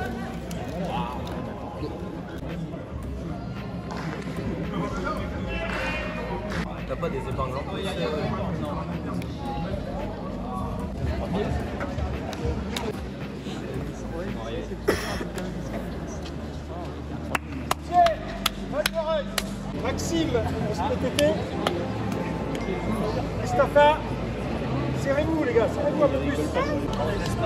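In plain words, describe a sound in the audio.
People chatter in a large echoing hall.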